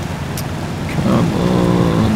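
A truck engine revs up loudly as it climbs.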